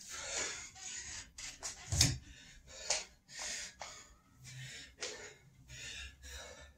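A man breathes heavily in short, hard bursts.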